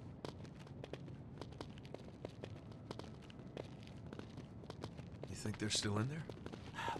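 Footsteps tap on pavement as several people walk.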